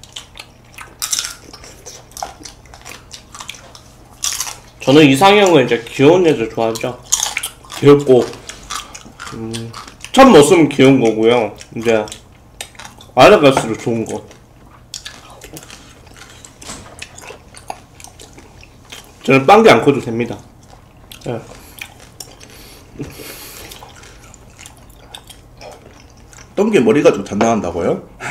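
A young man chews food close to a microphone.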